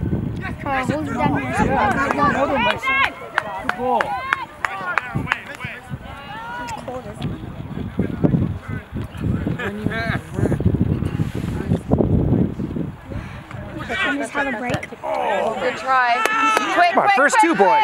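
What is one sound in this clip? Young players shout to one another across an open field.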